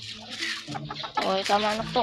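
A hen clucks close by.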